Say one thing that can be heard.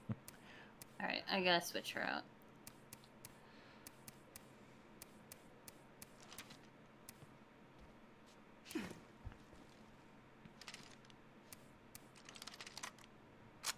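Short interface clicks tick again and again.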